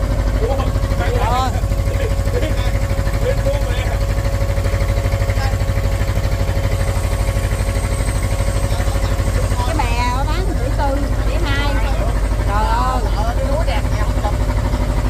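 A man talks nearby over the engine.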